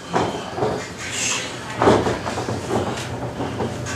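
A man speaks loudly through a microphone in an echoing room.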